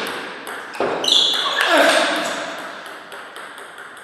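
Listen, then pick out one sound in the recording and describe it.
A man shouts loudly after winning a point.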